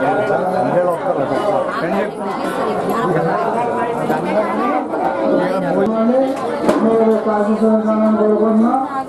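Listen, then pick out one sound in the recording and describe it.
A crowd of women and men sing a song together.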